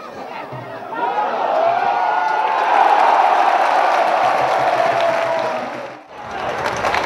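A crowd of spectators cheers loudly outdoors.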